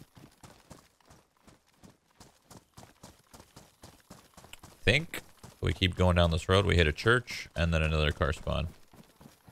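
Footsteps tread steadily through grass.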